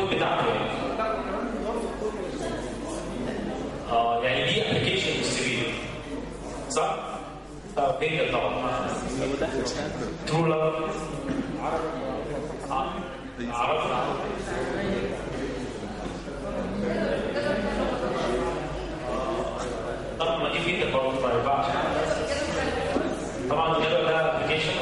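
A man speaks with animation into a microphone, heard over loudspeakers in an echoing hall.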